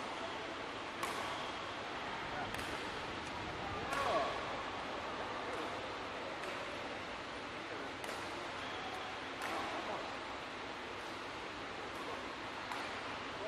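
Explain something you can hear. A racket hits a shuttlecock with a sharp pop, again and again, in an echoing hall.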